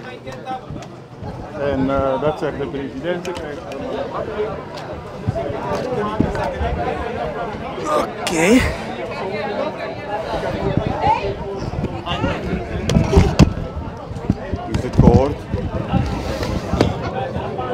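A crowd of men talks and calls out all around, close by.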